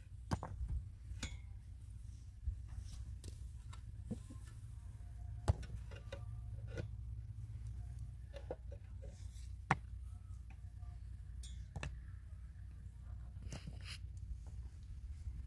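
Concrete blocks knock and scrape against each other as they are set in place.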